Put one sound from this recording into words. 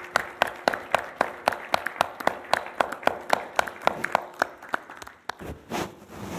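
A few people clap their hands in a quiet room.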